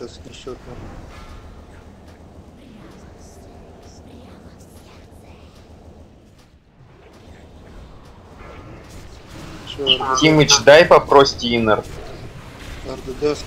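Magic spells crackle and whoosh in a fight.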